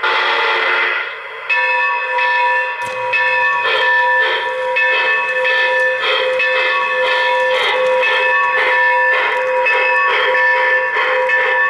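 Model train wheels clatter along metal track.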